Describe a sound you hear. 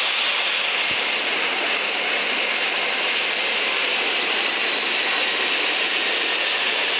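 A jet airliner's engines roar steadily in flight.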